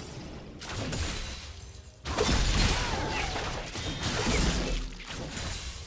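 Game spells crackle and burst during a fight.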